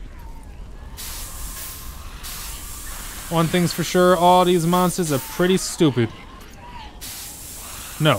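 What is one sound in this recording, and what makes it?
A fire extinguisher hisses as it sprays.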